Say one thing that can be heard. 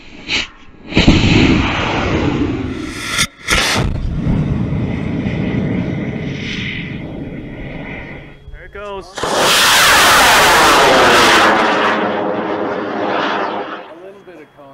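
A rocket motor ignites and roars loudly as the rocket lifts off.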